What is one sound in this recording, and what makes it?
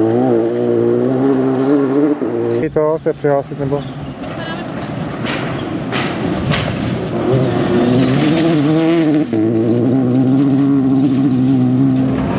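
Gravel crunches and sprays under a rally car's tyres.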